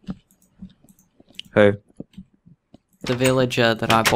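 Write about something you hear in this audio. A wooden door clicks open.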